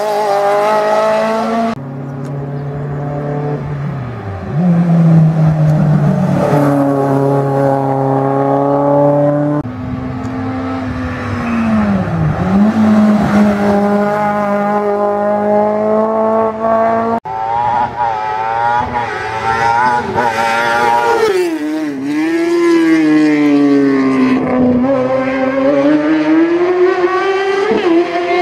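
Rally car engines roar and rev hard as cars race past one after another.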